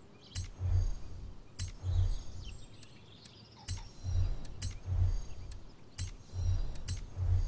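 Short interface clicks sound repeatedly, each followed by a soft low thump.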